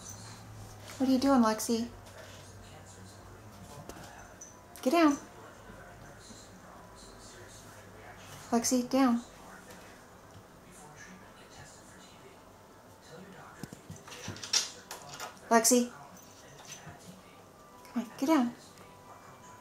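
A cat meows loudly several times, close by.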